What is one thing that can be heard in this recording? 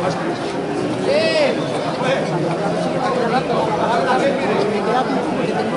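A crowd of spectators chatters and shouts nearby outdoors.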